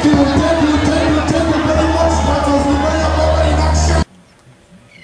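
Hand drums pound out a fast rhythm in a lively group performance.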